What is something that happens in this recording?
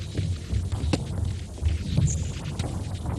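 A ball bounces on a wooden floor.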